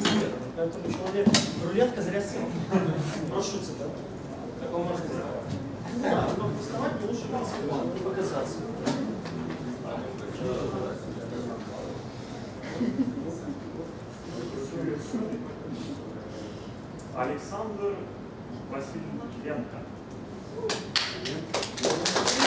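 A man speaks to a group at a distance.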